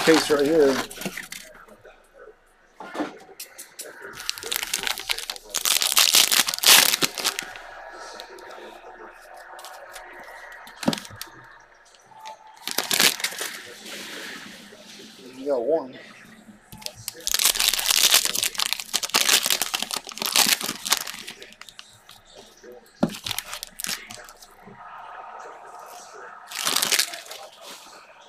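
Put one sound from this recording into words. Plastic wrappers crinkle and rustle as packs are torn open by hand.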